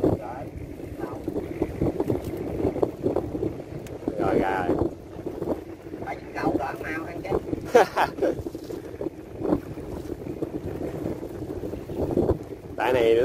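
A fishing net rustles.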